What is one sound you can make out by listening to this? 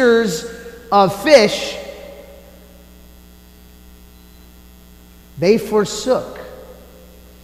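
A man chants in a sung voice through a microphone, echoing in a large hall.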